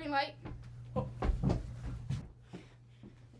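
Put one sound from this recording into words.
Feet thump on the floor during dancing.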